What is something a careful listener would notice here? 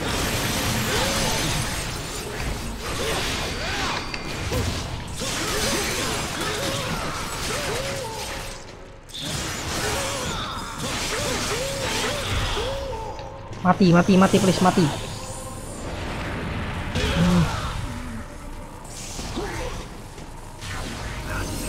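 Sword slashes and magic blasts clash loudly.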